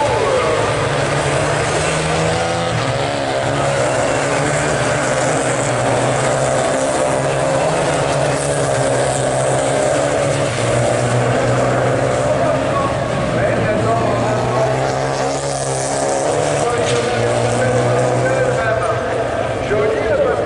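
Several race car engines roar loudly at high revs as the cars pass nearby.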